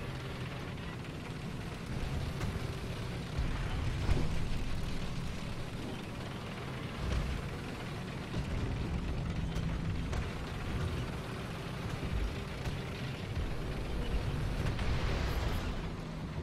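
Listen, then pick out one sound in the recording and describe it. Tank tracks clatter and squeak over snow.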